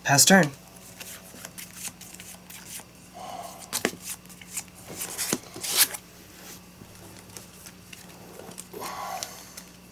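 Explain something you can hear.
Playing cards tap and slide on a soft mat.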